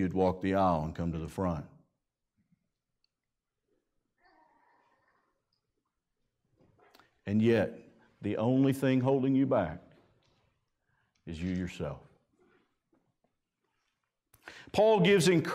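A man preaches through a microphone in a calm, measured voice, with pauses between phrases.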